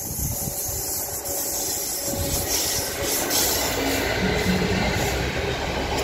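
A Class 66 diesel-electric locomotive roars past at speed.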